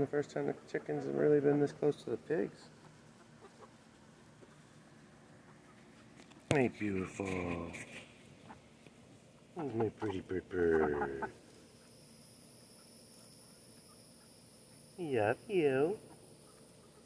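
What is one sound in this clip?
A hen clucks and croons close by.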